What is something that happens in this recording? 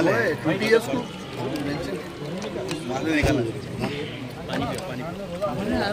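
A crowd of men talk and chatter together close by.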